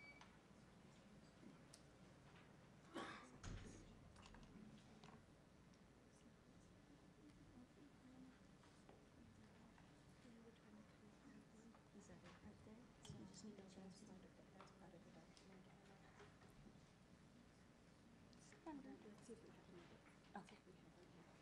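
Adults murmur quietly in a large room.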